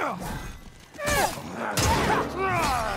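A sword swings and strikes with a metallic clang.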